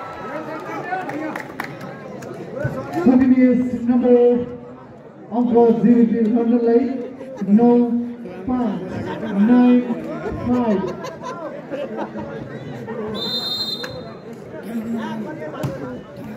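A large outdoor crowd chatters and cheers loudly.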